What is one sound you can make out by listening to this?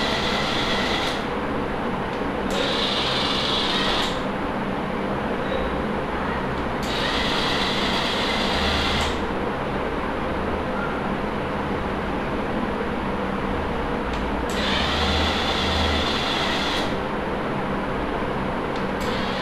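The electric motors of a small robot car whir as it rolls across a hard floor.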